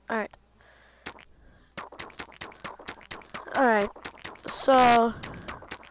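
Short game pops and clicks sound rapidly as stickers are placed.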